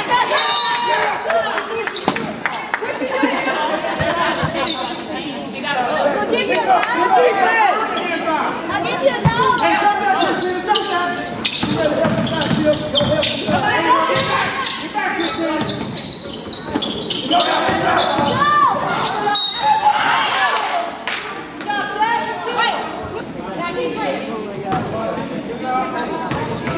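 A crowd of spectators talks and cheers in an echoing gym.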